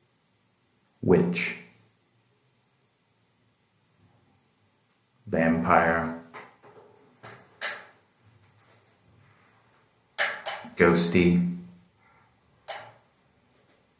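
A man speaks calmly in short phrases close by, with pauses between them.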